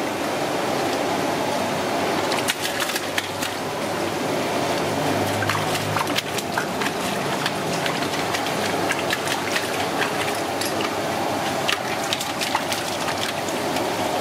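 Hands slosh and rub things in water.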